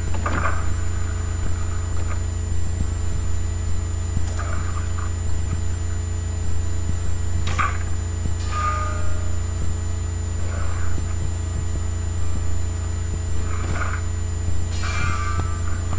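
Short chimes and clicks sound as game menus open and items are picked.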